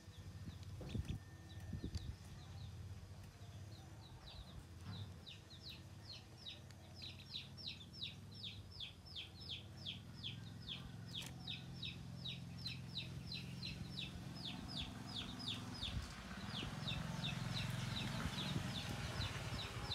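Chicks peep rapidly and shrilly close by.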